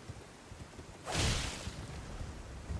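A heavy blow strikes with a loud burst.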